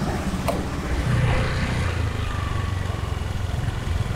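A motorbike engine rumbles steadily.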